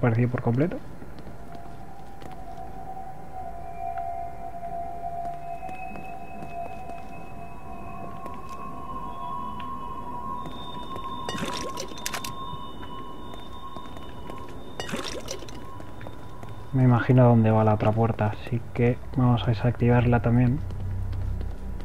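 Footsteps walk slowly on a hard floor.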